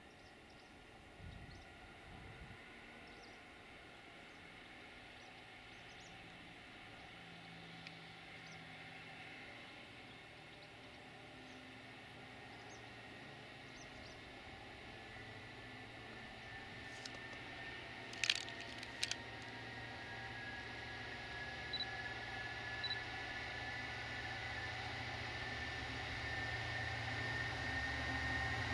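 A diesel locomotive engine rumbles, growing louder as it approaches.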